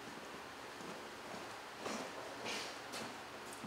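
Footsteps pad across a rubber floor.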